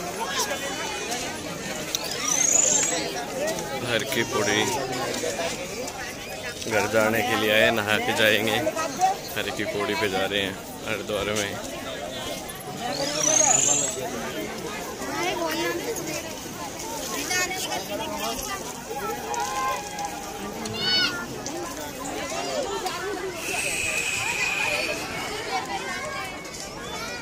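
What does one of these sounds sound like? A crowd chatters outdoors in the background.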